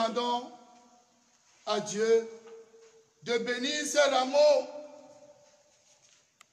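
A man sings slow, drawn-out notes nearby, echoing in a large hall.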